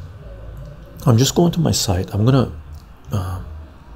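An older man speaks calmly into a close microphone.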